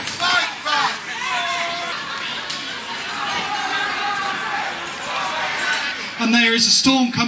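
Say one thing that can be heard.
A crowd of marchers chatters and calls out outdoors.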